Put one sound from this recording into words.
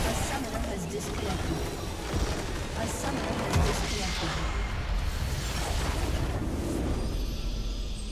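Game spells and attacks crash and whoosh loudly.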